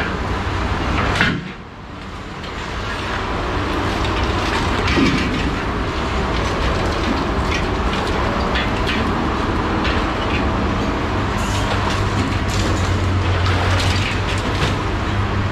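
Scrap metal clanks and rattles now and then.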